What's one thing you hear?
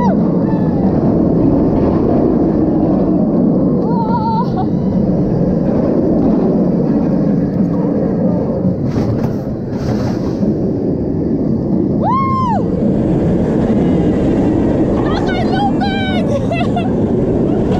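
Wind roars loudly past.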